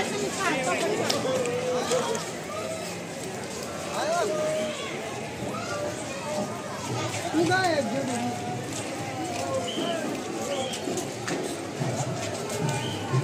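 Footsteps shuffle on paving.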